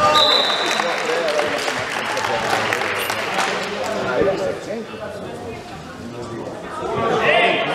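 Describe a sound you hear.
Players shout and call out in a large echoing hall.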